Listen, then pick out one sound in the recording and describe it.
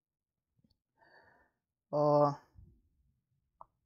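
A man speaks briefly and calmly.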